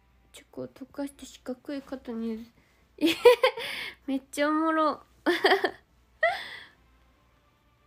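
A young woman speaks softly and cheerfully close to a microphone.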